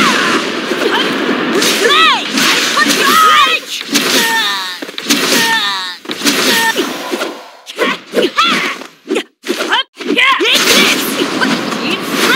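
Sword slashes and magic blasts whoosh and crack in quick bursts.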